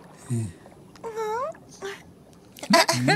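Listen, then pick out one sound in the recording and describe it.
A cartoon character chatters in a shrill, excited voice.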